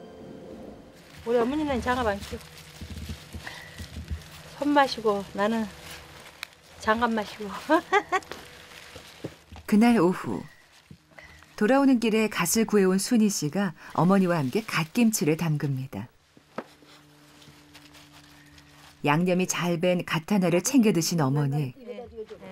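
A middle-aged woman talks calmly and cheerfully nearby.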